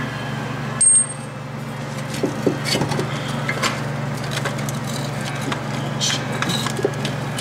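Metal car parts clink and knock as hands work on a brake.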